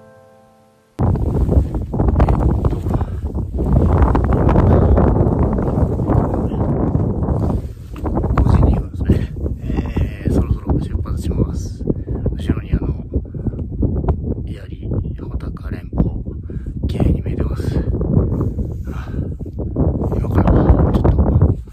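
Strong wind roars across an open mountainside.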